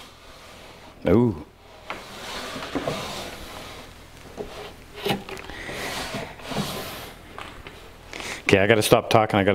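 A wooden drawer slides in and out with a soft scraping rumble.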